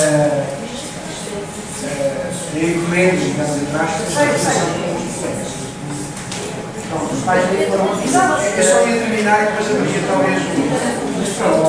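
A man speaks into a microphone through loudspeakers in an echoing room.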